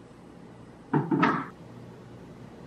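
A glass jug is set down on a hard surface with a thud.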